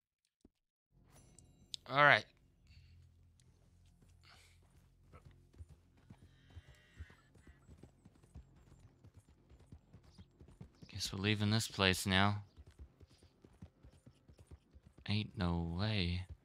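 A horse's hooves thud steadily on the ground.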